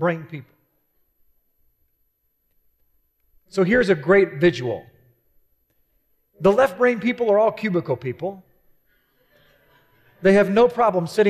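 A man speaks calmly through a headset microphone, with pauses.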